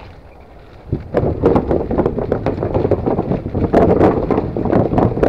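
Bicycle tyres rattle loudly over wooden bridge planks.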